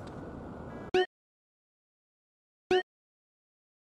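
A video game menu chimes.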